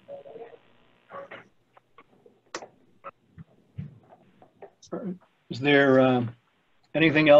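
An older man speaks calmly over an online call.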